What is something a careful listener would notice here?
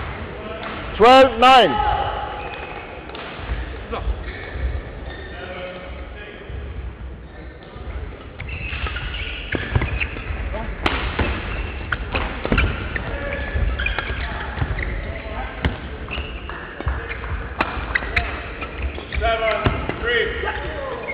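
Shoes squeak sharply on a sports floor.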